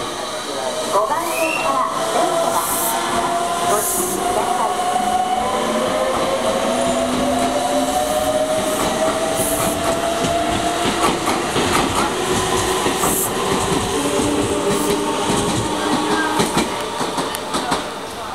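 An electric train pulls away with a rising motor whine.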